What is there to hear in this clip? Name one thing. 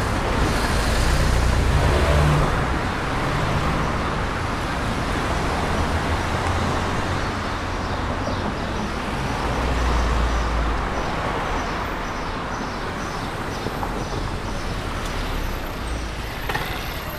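Car traffic rumbles steadily past, close by outdoors.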